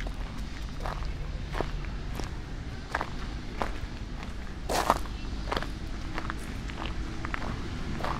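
Footsteps tap on pavement nearby.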